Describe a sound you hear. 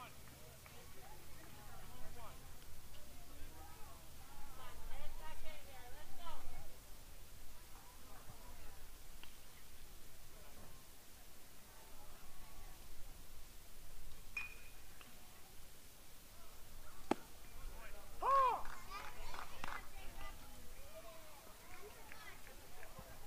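Young men call out and chatter across an open field.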